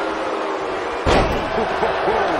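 A body slams hard onto a wrestling ring mat with a loud thud.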